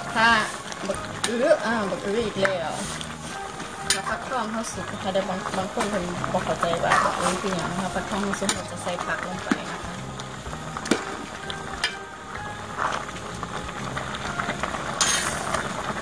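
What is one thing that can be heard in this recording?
A ladle stirs a thick stew, scraping against a metal pot.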